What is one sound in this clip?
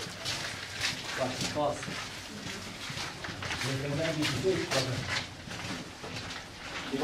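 Footsteps crunch on a gritty floor in a narrow, echoing tunnel.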